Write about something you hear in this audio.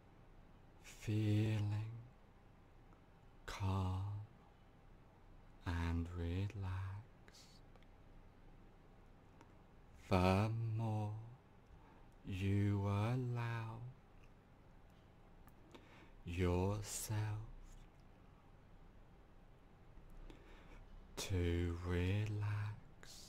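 A man speaks calmly and slowly into a nearby microphone, with long pauses.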